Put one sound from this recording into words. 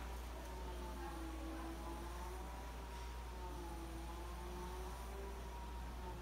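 A motorized window blind whirs steadily as it moves.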